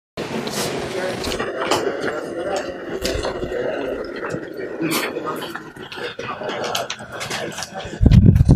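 A man lectures calmly through a clip-on microphone in a room with some echo.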